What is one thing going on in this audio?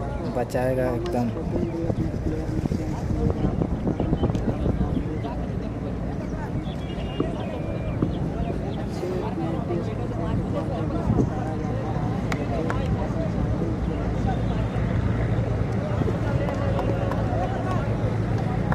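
A large outdoor crowd chatters and calls out throughout.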